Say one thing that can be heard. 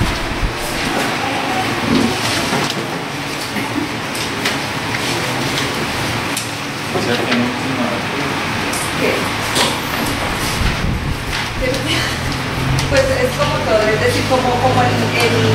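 Paper sheets rustle and flip.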